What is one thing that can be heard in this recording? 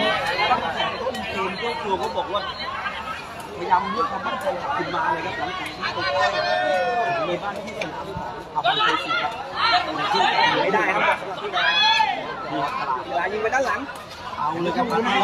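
A large crowd chatters and cheers loudly outdoors.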